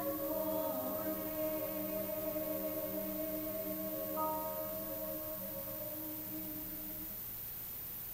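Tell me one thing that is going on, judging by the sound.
A choir sings a sustained chord in a large hall and fades out.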